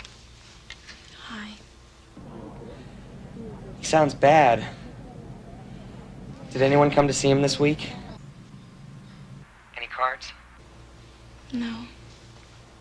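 A young woman speaks softly into a phone, close by.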